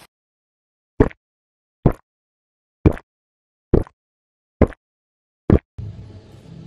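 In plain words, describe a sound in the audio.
A man gulps down a drink in loud swallows.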